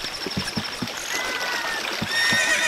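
Water splashes underfoot.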